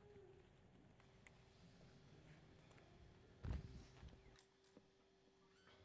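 An acoustic guitar plays a soft, held note.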